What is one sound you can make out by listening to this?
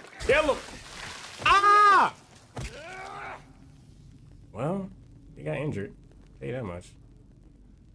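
A young man exclaims loudly and with animation into a close microphone.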